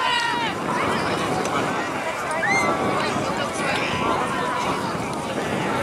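Young children shout and cheer excitedly outdoors.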